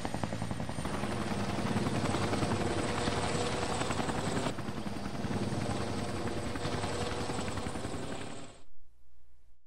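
A helicopter's rotor thumps loudly overhead.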